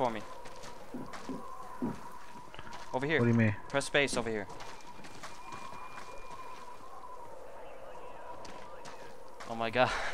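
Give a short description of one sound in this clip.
Soft footsteps shuffle on a rocky floor.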